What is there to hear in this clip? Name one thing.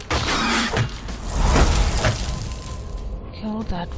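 A loud blast bursts and debris scatters.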